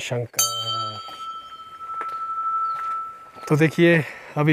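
A bell rings out once and its clear tone lingers.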